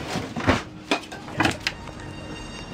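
Wooden boxes knock and thump as they are moved.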